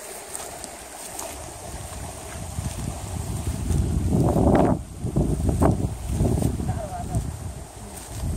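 A river flows gently nearby.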